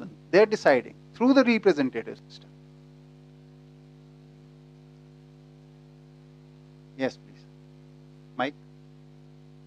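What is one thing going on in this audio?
A middle-aged man speaks calmly into a headset microphone in short bursts.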